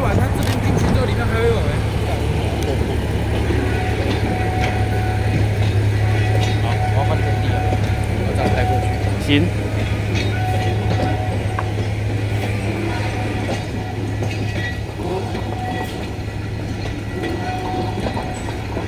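A diesel locomotive engine rumbles steadily nearby, slowly fading.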